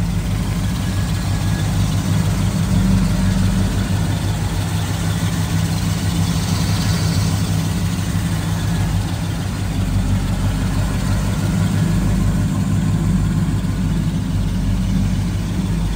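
A car engine idles with a deep, steady, lumpy rumble close by.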